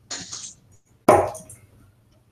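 Steel-tip darts thud into a bristle dartboard.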